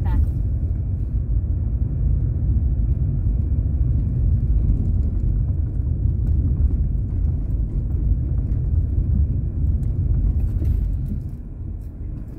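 Tyres roll over a rough road surface.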